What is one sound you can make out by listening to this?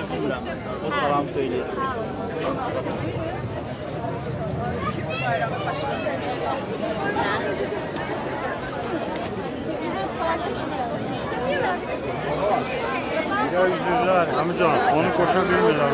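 A young man speaks close to the microphone.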